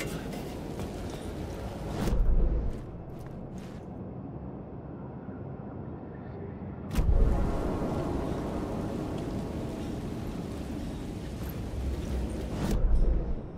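Footsteps thud on a metal walkway.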